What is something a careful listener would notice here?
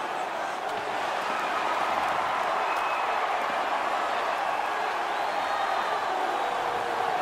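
A large arena crowd roars steadily, echoing in a big hall.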